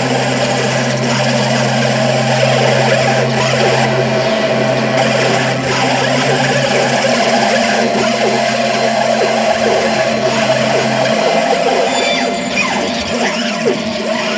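A bowed stringed instrument scrapes and groans in slow strokes.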